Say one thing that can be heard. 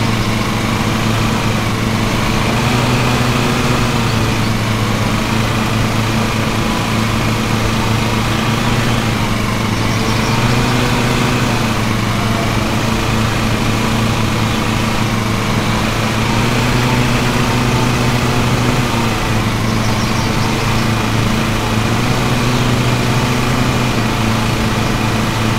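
A riding mower engine hums steadily, rising and falling slightly as it turns.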